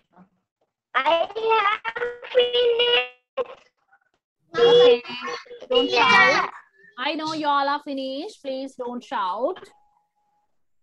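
A young girl speaks clearly over an online call.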